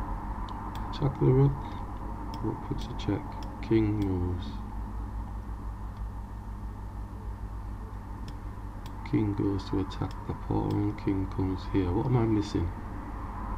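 A man speaks calmly and in short bursts into a microphone.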